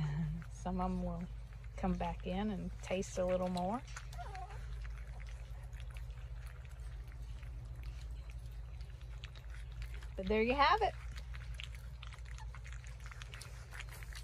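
Puppies lap and smack wet food from a metal bowl.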